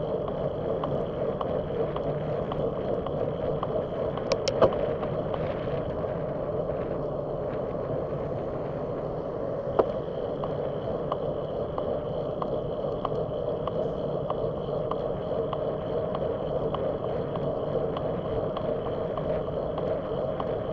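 A bicycle rolls steadily along a paved road with a low hum of tyres and wind.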